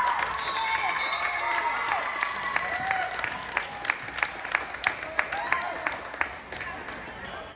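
Young girls cheer and call out in a large echoing gym.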